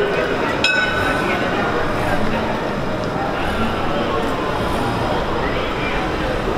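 A crowd of people shouts and chatters loudly outdoors.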